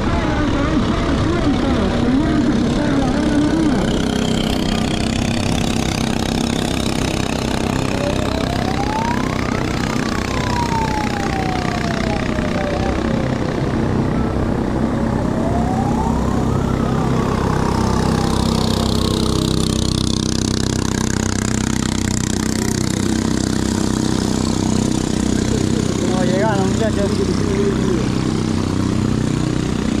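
A boat motor drones steadily close by.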